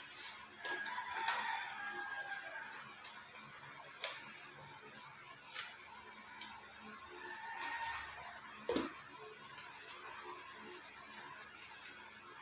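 Paper crinkles softly as it is folded.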